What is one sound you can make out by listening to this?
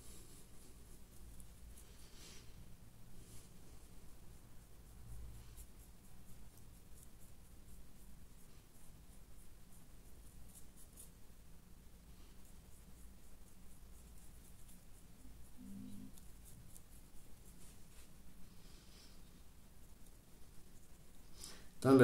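A brush dabs and scrapes softly against a small model.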